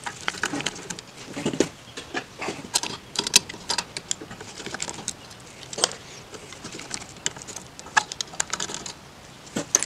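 A screwdriver clicks and scrapes against a metal carburetor.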